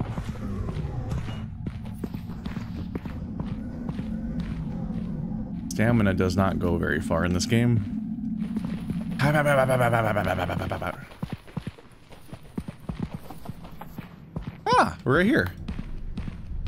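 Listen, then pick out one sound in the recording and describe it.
Footsteps fall steadily on a hard floor.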